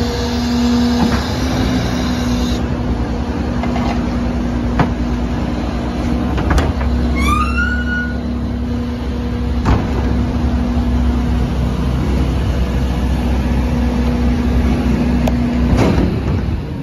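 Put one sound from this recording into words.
A bin lifter whirs and clanks as it tips a wheelie bin.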